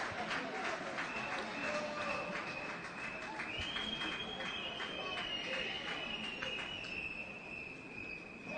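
A basketball bounces repeatedly on a hard floor, echoing in a large hall.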